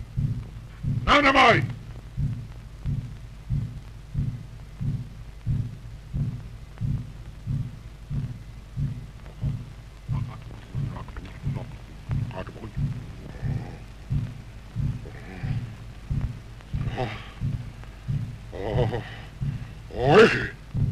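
An elderly man chants loudly.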